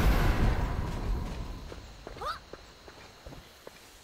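Fire bursts and crackles from a spell.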